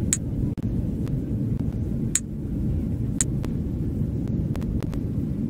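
A steady low engine hum drones throughout.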